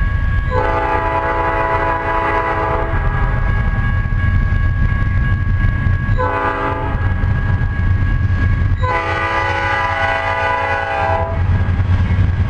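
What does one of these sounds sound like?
A train horn blares in long blasts, drawing closer.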